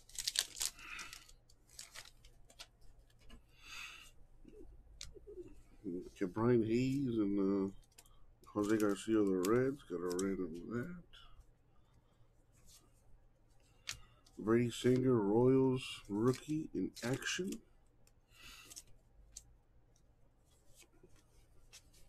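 Trading cards rustle and slide against each other as they are shuffled.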